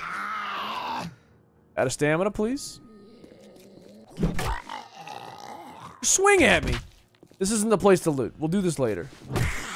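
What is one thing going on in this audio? A zombie growls and groans.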